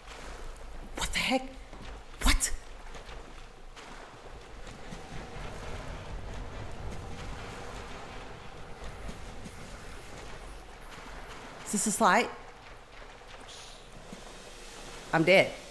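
A young woman exclaims in short bursts into a close microphone.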